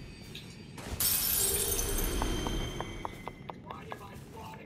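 A shimmering magical chime rings out and fades.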